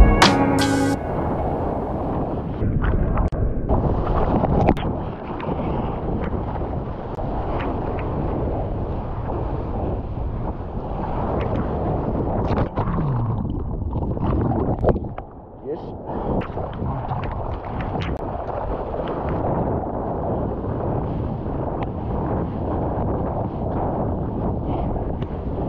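Water rushes and splashes close by around a moving surfboard.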